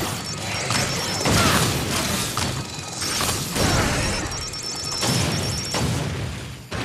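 Rapid blaster shots fire again and again.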